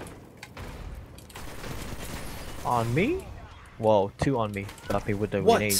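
Guns fire in short bursts.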